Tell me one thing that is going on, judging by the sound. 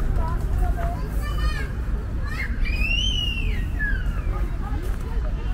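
A bird chirps nearby.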